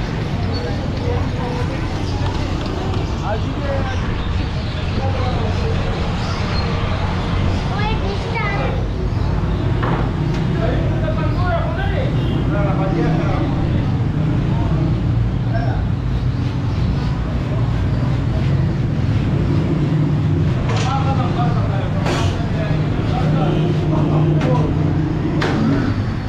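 Busy street traffic rumbles steadily outdoors.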